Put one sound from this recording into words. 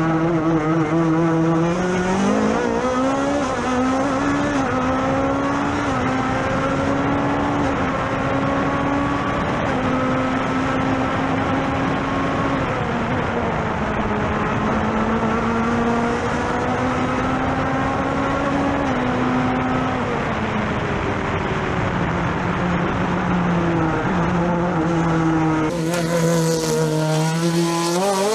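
A racing car engine roars loudly from close by, rising and falling in pitch as gears shift.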